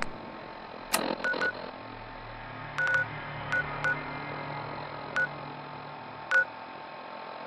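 Short electronic beeps click now and then.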